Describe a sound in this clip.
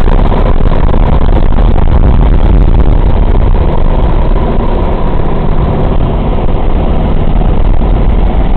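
The radial piston engines of a four-engine bomber drone, heard from inside the plane in flight.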